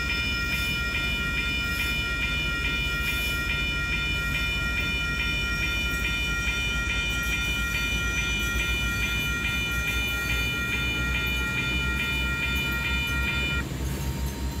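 A level crossing bell rings rapidly and steadily, then stops.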